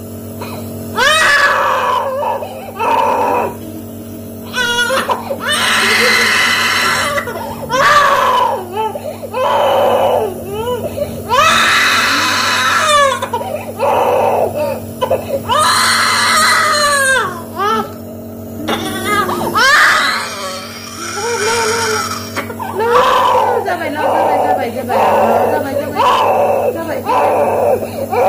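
A young girl screams and wails close by.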